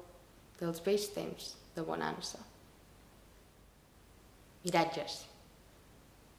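A young woman reads aloud calmly, close to a microphone.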